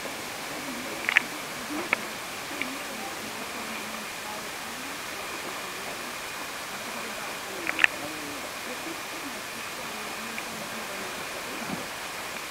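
Water splashes as a large animal leaps about in shallow water.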